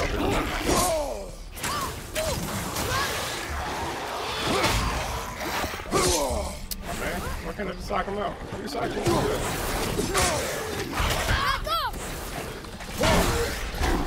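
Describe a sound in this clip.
Weapons clash and thud in a video game fight.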